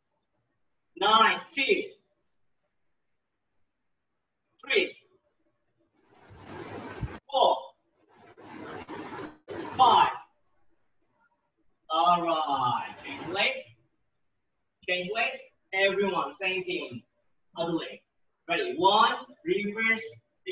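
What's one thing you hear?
A man calls out short commands loudly through an online call.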